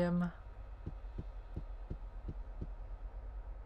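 Soft footsteps thud steadily on a hard floor.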